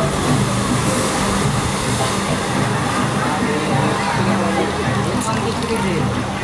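Water splashes and rushes loudly as a boat plunges down a chute.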